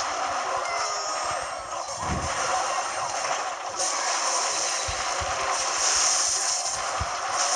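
Video game battle sound effects clash and thud.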